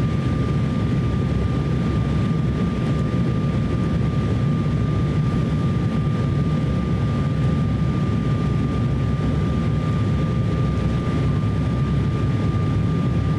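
A twin-turbofan Embraer 170 regional jet roars steadily on final approach, heard from inside the cabin.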